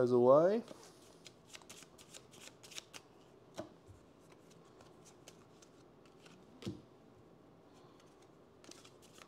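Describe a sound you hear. Playing cards shuffle and tap against each other.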